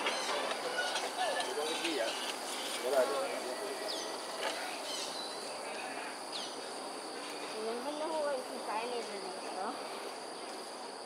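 Birds chirp and call outdoors.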